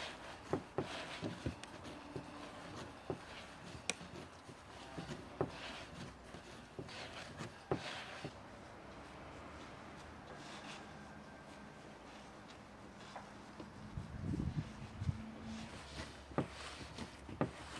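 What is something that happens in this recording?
Hands knead and slap soft dough on a wooden table.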